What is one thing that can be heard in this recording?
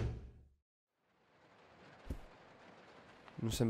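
Footsteps thud softly on a carpeted floor.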